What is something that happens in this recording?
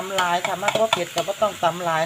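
Dry spices pour and patter into a metal bowl.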